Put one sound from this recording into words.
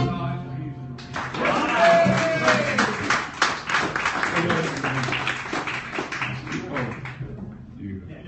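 An acoustic guitar strums quickly and loudly.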